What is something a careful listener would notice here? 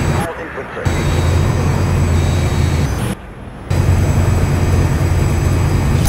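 A jet engine roars loudly and steadily, cutting out briefly twice.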